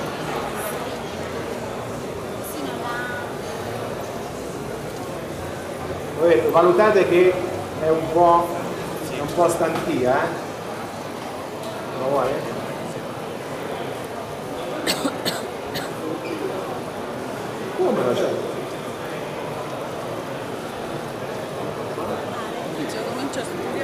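A crowd chatters in a busy indoor space.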